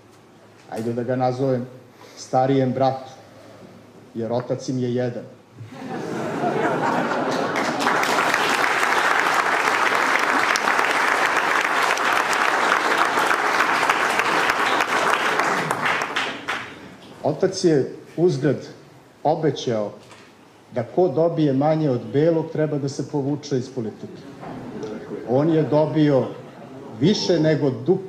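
A man speaks firmly through a microphone in an echoing hall.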